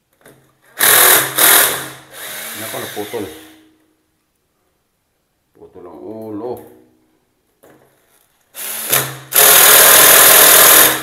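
A power drill whirs in short loud bursts.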